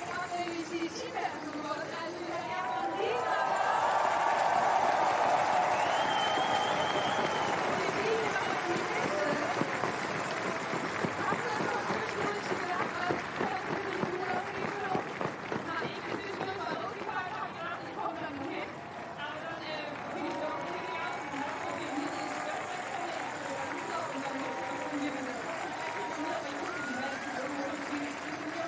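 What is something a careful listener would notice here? A large crowd cheers and claps outdoors.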